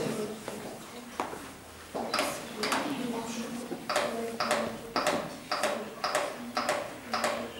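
A training manikin's chest clicks under rhythmic pressing.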